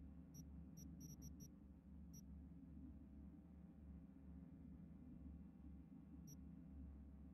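Short electronic menu blips tick as a selection moves.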